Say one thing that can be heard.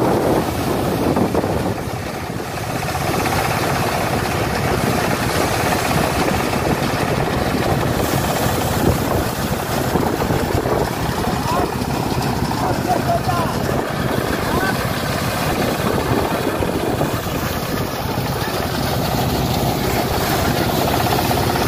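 A threshing machine rattles and hums loudly outdoors.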